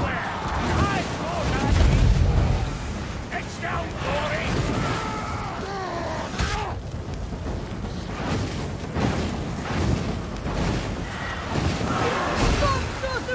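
Fire bursts roar and crackle in loud blasts.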